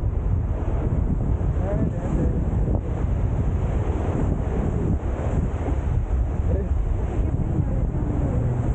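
Waves wash onto the shore nearby.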